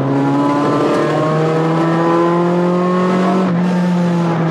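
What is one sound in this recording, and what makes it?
A rally car engine shifts up through the gears, its pitch dropping at each change.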